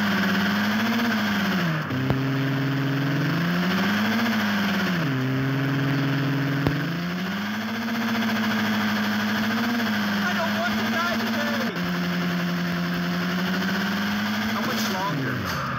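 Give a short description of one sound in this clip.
A sports car engine roars, rising and dropping in pitch as it shifts through gears.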